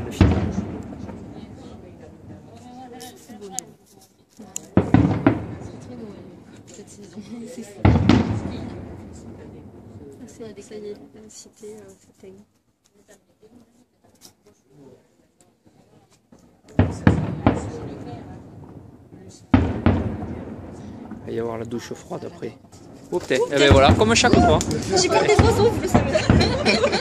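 Fireworks boom loudly in the distance, echoing off the surroundings.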